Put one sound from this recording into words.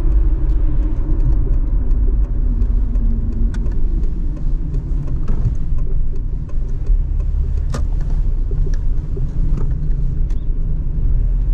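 Tyres rumble low on the road.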